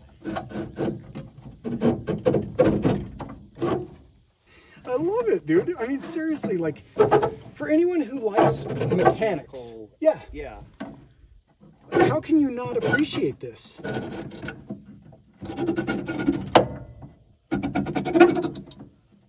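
A metal window frame rattles and scrapes as it is cranked up.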